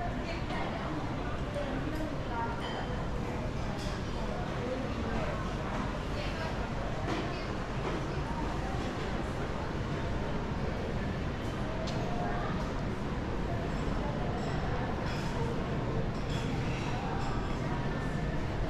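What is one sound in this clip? Distant voices murmur in a large echoing indoor hall.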